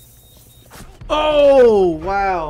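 A man shouts loudly into a microphone.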